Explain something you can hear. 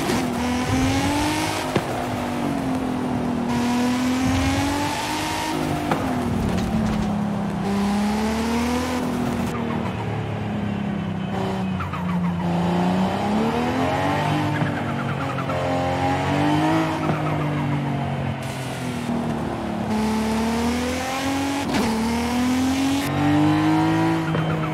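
A car engine revs up and down through the gears.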